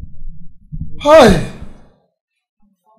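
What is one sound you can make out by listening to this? An elderly man lets out a loud, falling exclamation.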